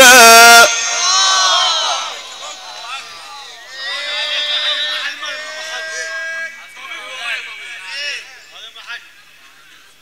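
A man chants in a melodic voice through a loudspeaker.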